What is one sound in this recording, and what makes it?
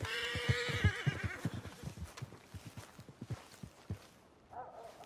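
Footsteps thud quickly on grass.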